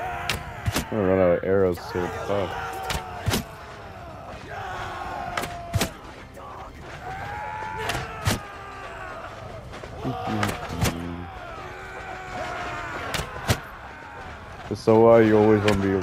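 Men shout in battle some way off.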